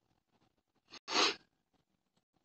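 Paper slides briefly across a table.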